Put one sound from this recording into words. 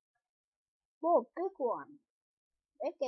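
A boy speaks briefly and close to a microphone.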